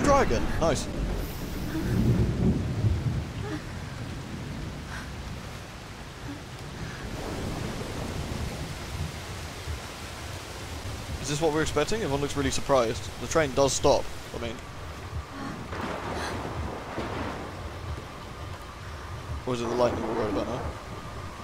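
A young woman speaks softly and anxiously.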